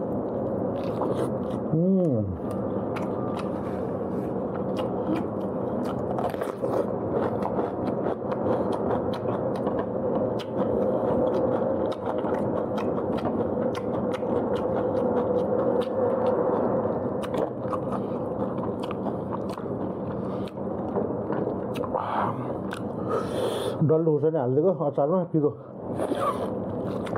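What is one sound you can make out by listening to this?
A man bites into crispy roasted meat with a loud crunch.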